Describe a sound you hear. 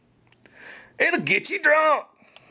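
A man talks loudly and with animation, close to the microphone.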